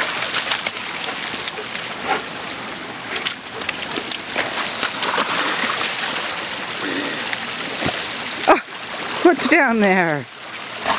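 Water trickles steadily in a small stream.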